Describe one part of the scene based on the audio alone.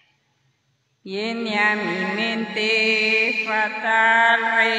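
Women sing together through a loudspeaker.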